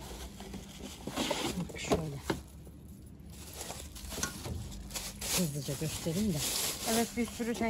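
A plastic bag rustles and crinkles in hands.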